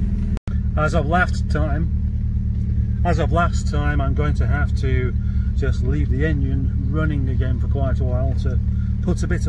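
A middle-aged man talks close by, calmly.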